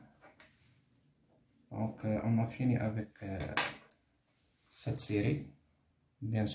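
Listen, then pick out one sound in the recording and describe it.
A pen is set down on paper.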